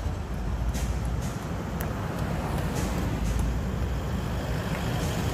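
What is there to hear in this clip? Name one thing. Car engines hum as vehicles drive slowly past.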